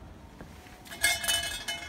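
A small bell jingles briefly.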